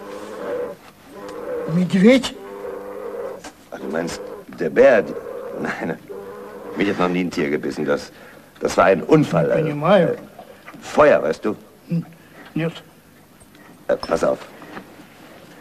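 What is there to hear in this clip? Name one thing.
An elderly man speaks insistently, close by.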